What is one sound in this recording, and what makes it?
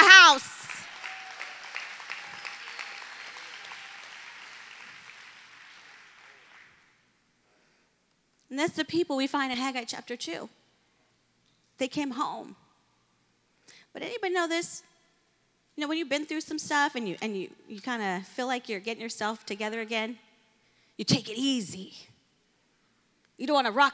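A woman speaks into a microphone, calmly and with pauses, heard through loudspeakers in a large hall.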